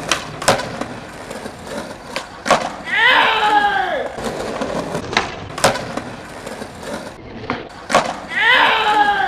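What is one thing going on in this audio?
Skateboard wheels roll over pavement.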